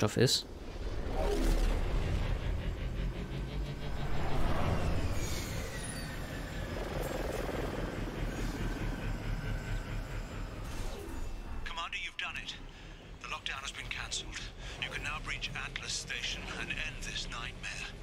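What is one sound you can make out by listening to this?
A hover vehicle's engine hums and whooshes.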